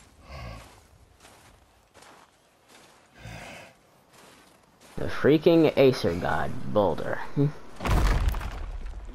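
Heavy footsteps crunch through snow.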